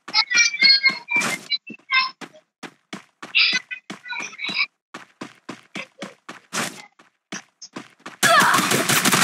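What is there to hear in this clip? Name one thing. Footsteps patter quickly over ground.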